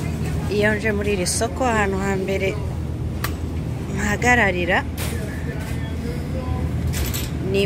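A shopping cart rattles as it rolls across a hard floor.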